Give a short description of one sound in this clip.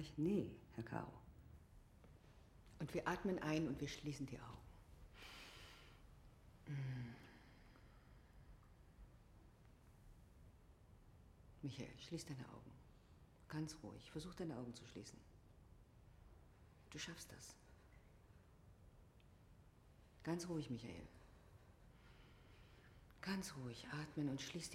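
A woman speaks calmly and clearly to a group, in a room with a slight echo.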